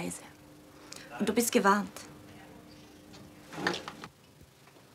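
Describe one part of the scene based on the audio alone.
A young woman speaks calmly into a telephone.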